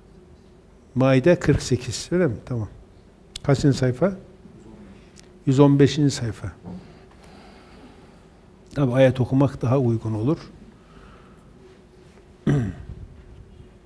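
A middle-aged man speaks firmly and with emphasis into a microphone, in bursts with pauses.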